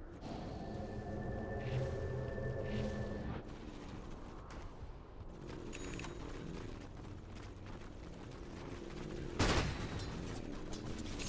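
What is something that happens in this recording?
Fighting sounds clash and burst with crackling spell effects.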